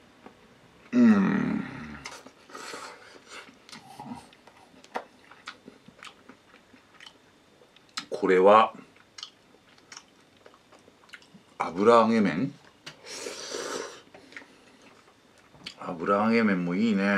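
A man lets out drawn-out voiced groans of delight up close.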